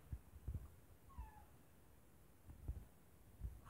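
A cabinet door swings open with a dull thump.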